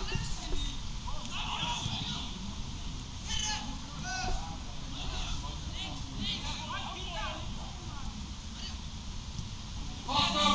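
Young men shout to each other across an outdoor football pitch.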